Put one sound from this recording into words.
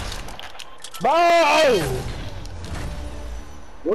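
A short victory fanfare plays.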